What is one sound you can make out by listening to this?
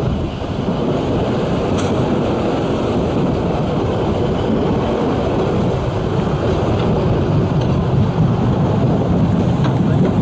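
A train rumbles and clatters steadily along the track.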